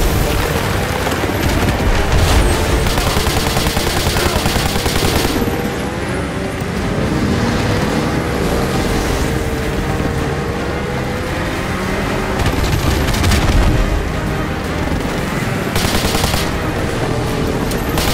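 A snowmobile engine drones steadily, rising and falling in pitch.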